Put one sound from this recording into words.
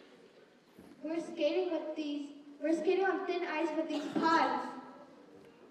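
A young girl speaks into a microphone with a few pauses.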